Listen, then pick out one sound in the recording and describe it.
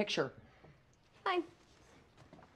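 A young woman speaks cheerfully close by.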